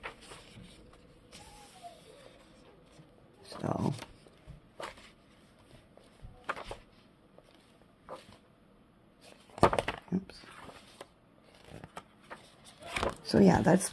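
Paper pages rustle and flap as they are turned.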